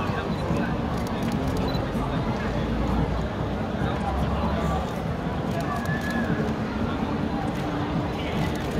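A crowd murmurs and chatters outdoors nearby.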